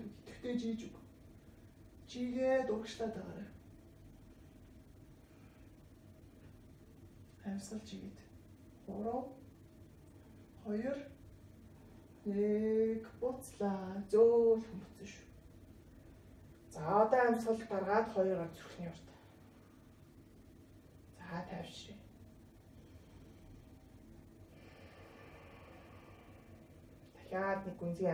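A woman speaks calmly, with long pauses between phrases.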